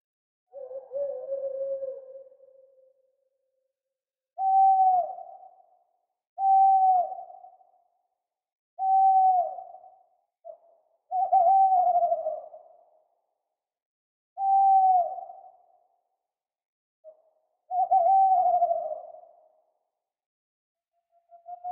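An owl hoots again and again, with pauses between the calls.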